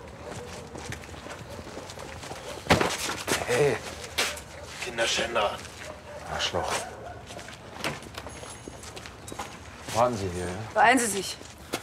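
Footsteps scuff on cobblestones.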